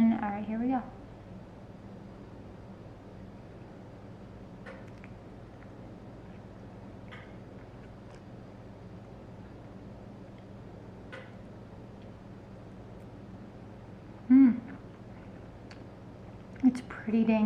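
A young woman hums and murmurs with pleasure close by.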